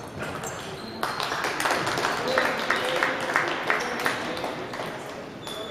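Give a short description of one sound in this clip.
A crowd of spectators applauds in an indoor hall.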